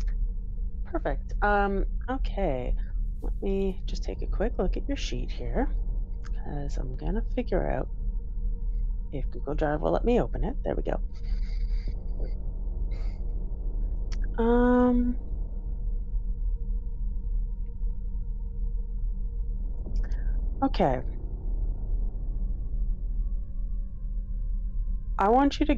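A woman speaks with animation over an online call.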